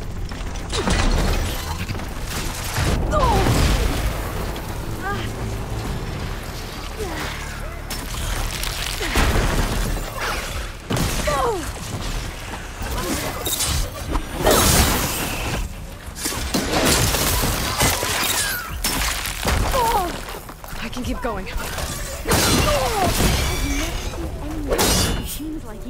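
Machine creatures screech and roar.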